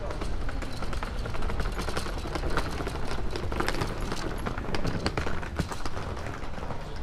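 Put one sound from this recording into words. Suitcase wheels rattle over cobblestones close by.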